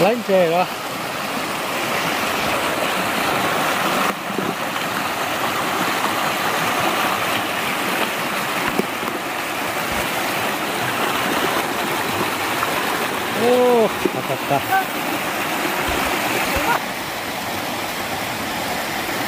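A shallow stream rushes loudly over rocks.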